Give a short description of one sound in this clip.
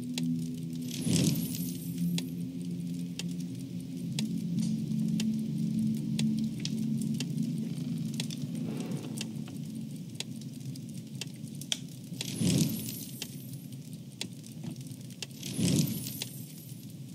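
A soft magical chime shimmers.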